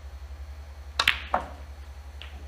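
Snooker balls click together sharply.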